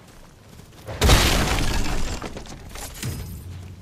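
A wooden crate smashes apart with a loud crack.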